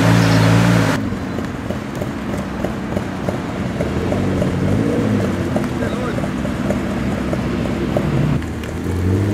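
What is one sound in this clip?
A sports car engine idles and rumbles as it rolls slowly.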